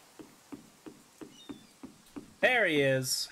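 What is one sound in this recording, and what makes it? Footsteps tap quickly on wooden boards.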